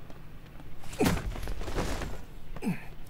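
Bodies thump heavily in a scuffle.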